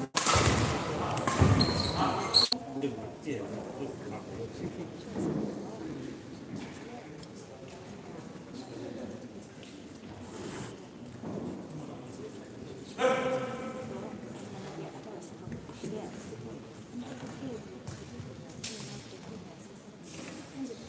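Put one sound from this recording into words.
Rackets strike a shuttlecock with sharp pops in an echoing hall.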